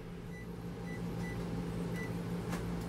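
Microwave buttons beep.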